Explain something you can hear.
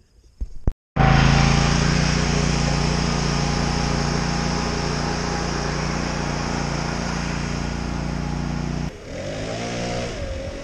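A riding mower's engine drones loudly and slowly fades as it drives away.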